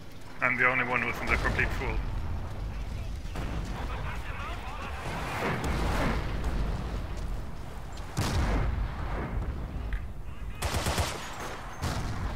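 Explosions boom and rumble nearby.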